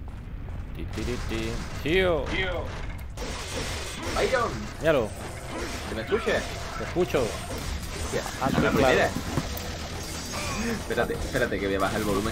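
Game monsters screech and hiss.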